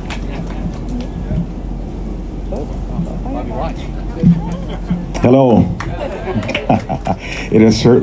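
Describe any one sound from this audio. A man speaks into a microphone, heard over a loudspeaker.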